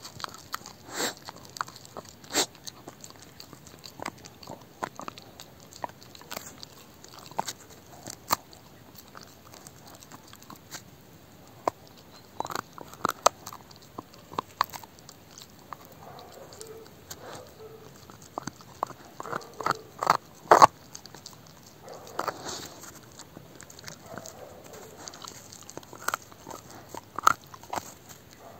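A dog gnaws and crunches on a bone close by.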